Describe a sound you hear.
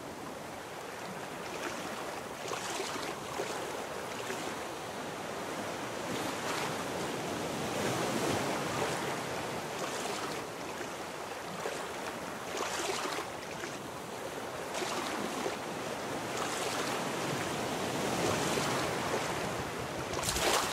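Waves wash steadily all around.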